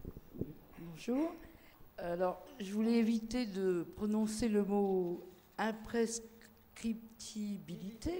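A woman speaks with animation through a microphone.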